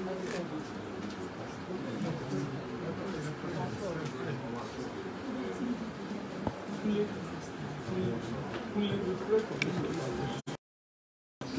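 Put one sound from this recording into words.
A man speaks calmly into a microphone, heard among background chatter.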